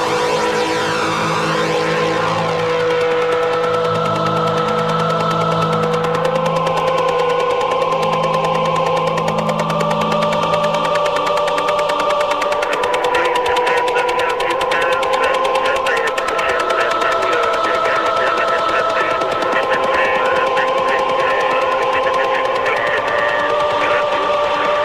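Electronic music with sustained synth tones and fast ticking beats plays loudly.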